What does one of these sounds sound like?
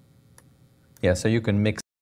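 A man speaks into a microphone, lecturing calmly.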